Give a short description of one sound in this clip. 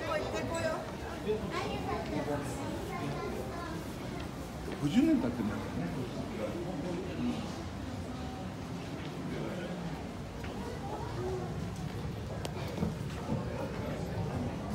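Many people chatter indistinctly nearby.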